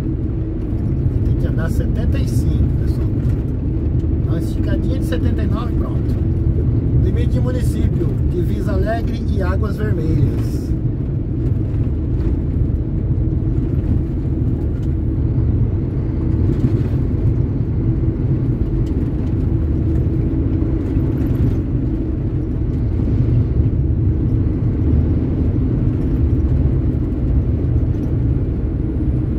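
A vehicle's engine rumbles steadily while driving on a road.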